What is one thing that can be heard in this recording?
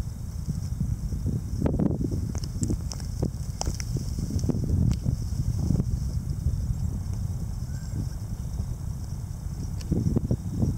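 Small birds flutter their wings in dry dirt, with soft scratchy rustling bursts.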